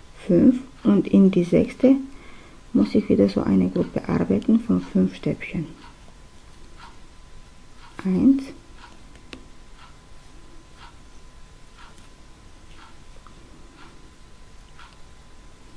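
A crochet hook pulls yarn through stitches with soft rustles.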